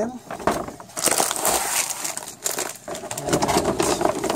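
Plastic snack bags crinkle and rustle as a hand handles them.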